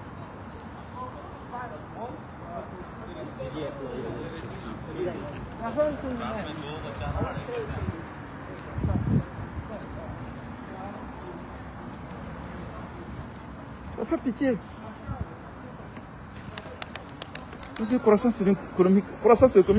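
A middle-aged man talks calmly close to a phone's microphone.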